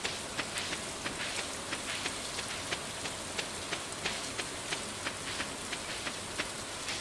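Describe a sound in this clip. Quick footsteps patter steadily on soft ground.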